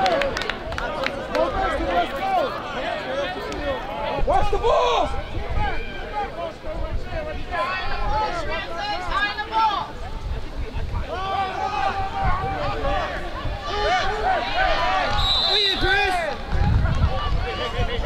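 Young players shout and call out across the field.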